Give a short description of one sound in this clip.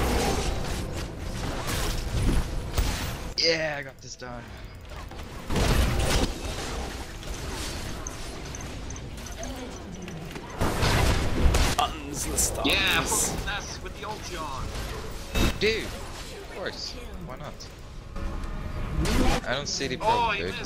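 Spell blasts and sword hits crackle and boom in a fast fight.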